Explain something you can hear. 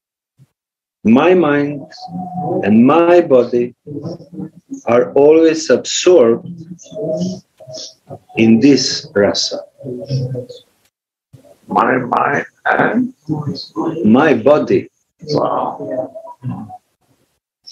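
An elderly man speaks calmly and at length over an online call.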